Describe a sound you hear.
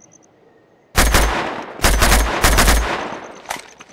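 A rifle fires loud, booming shots.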